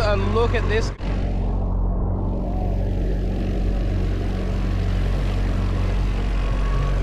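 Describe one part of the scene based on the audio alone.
Waves lap against a boat.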